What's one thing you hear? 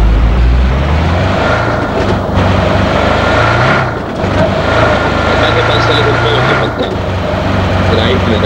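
A car engine roars steadily as a car drives over rough ground.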